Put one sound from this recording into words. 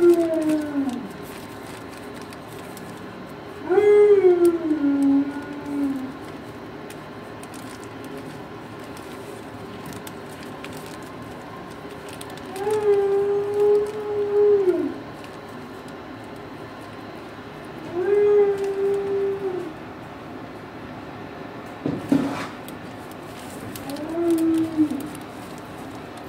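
A dog whines in long, drawn-out moans.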